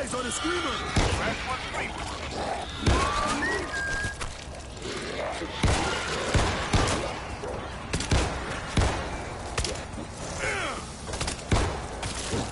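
Pistol shots ring out sharply, several times.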